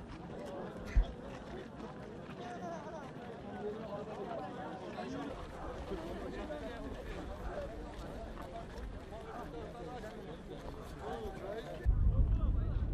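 A large crowd of people chatters and calls out outdoors.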